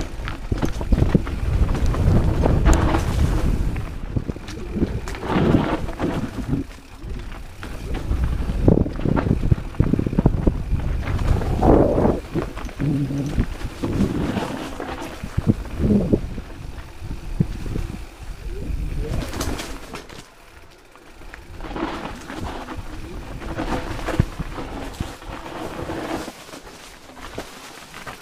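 Bicycle tyres crunch and skid over dirt and gravel.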